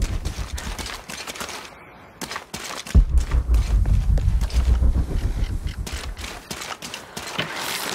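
Footsteps crunch on leaves and dirt.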